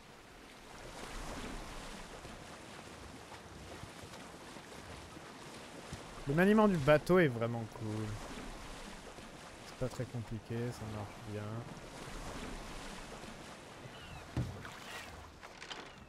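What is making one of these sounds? Water splashes against a sailing boat's hull.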